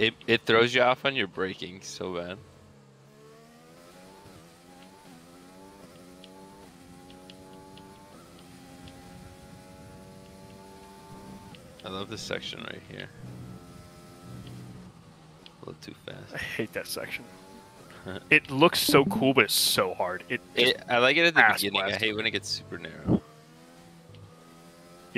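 A racing car engine whines, rising in pitch as it speeds up and dropping at corners.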